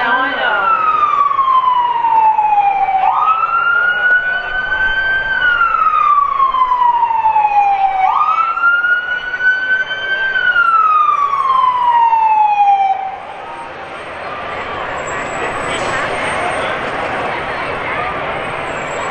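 Fire trucks rumble past slowly.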